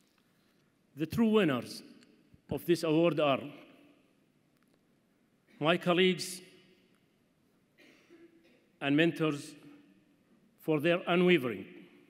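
A man speaks slowly and formally into a microphone, in bursts with pauses, in a reverberant hall.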